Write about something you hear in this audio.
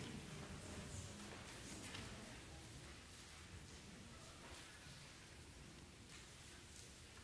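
A string quartet plays softly in a reverberant hall.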